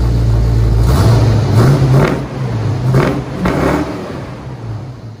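A car engine revs hard several times, roaring through its exhaust.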